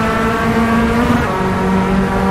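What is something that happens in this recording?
A gear shift briefly changes the engine's pitch.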